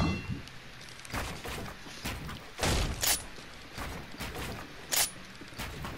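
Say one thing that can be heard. Wooden panels snap into place with sharp knocks.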